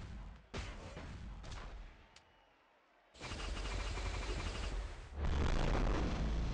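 Punches and heavy impacts thump loudly in a fighting game.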